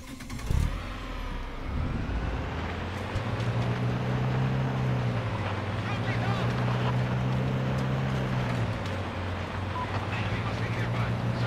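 An off-road SUV engine runs as the vehicle drives along a dirt track.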